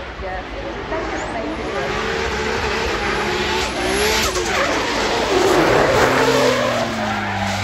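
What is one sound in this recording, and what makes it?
Tyres screech as a drift car slides sideways on tarmac.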